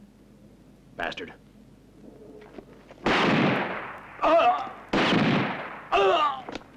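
Gunshots ring out loudly in a large echoing hall.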